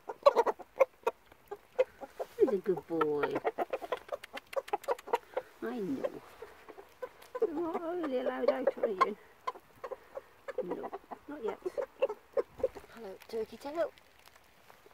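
A hen clucks and croons up close.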